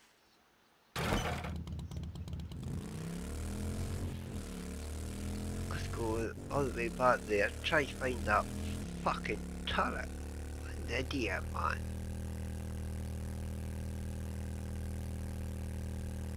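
A motorbike engine starts and runs with a steady drone.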